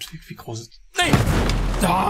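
A loud explosion booms and roars.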